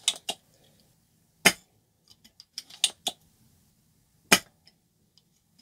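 Small plastic parts click and tap against a table.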